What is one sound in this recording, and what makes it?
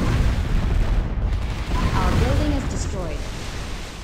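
An explosion booms with a deep rumble.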